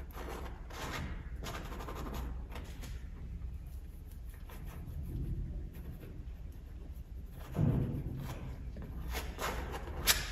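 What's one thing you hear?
A palette knife scrapes and dabs paint across a canvas.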